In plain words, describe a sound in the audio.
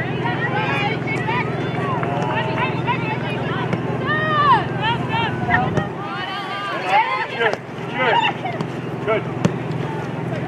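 Young women and spectators shout and call out across an open field.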